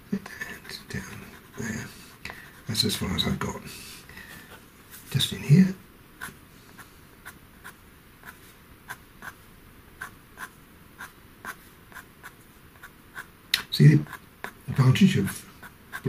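A pencil scratches lightly on paper in short, quick strokes.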